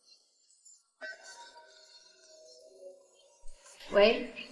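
A phone rings with a soft melody.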